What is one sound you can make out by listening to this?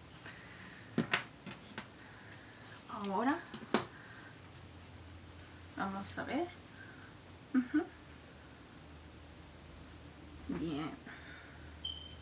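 A young woman speaks briefly and softly close by.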